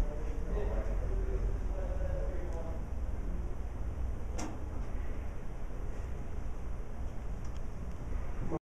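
A man speaks calmly and quietly into a close microphone.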